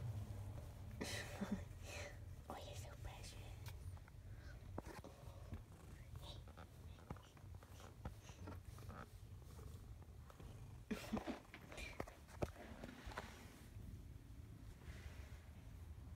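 A hand strokes a cat's fur with a soft rustle.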